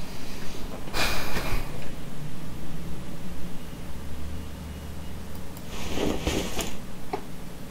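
A wrench rattles as bolts are loosened.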